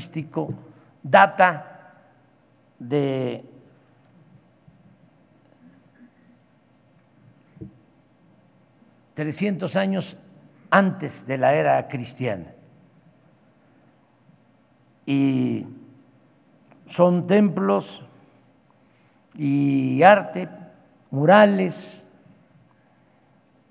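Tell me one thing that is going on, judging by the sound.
An elderly man speaks slowly and calmly into a microphone, with long pauses between phrases.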